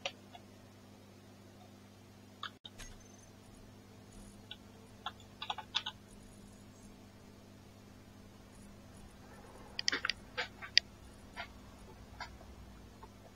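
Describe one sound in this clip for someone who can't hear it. Short soft clicks tick now and then.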